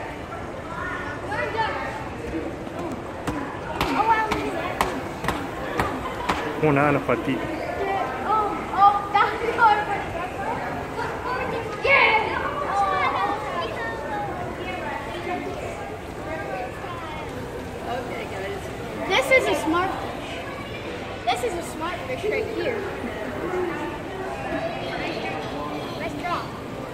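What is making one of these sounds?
Young boys talk excitedly close by.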